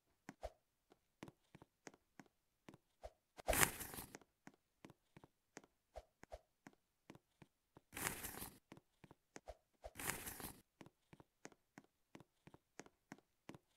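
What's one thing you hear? Quick, light footsteps tap steadily.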